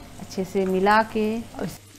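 Tomato slices drop into a hot pan.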